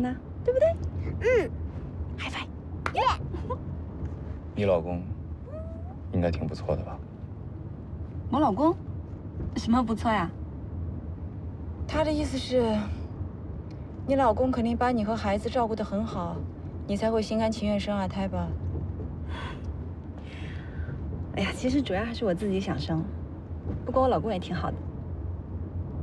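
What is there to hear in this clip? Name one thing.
A young woman laughs and talks playfully up close.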